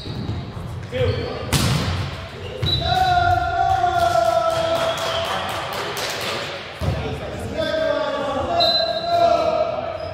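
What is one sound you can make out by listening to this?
Young men call out and shout to each other during play.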